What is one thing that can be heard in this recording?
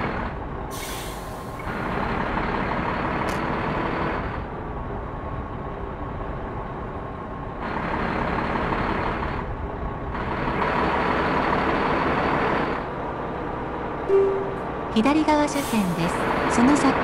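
A truck engine hums steadily and swells as it accelerates.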